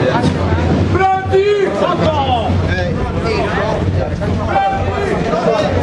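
A man sings out loudly over the crowd.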